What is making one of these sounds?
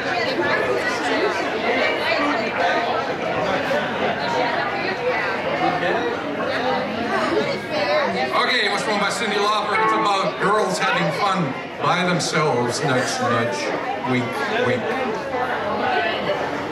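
An electric bass guitar plays a low line.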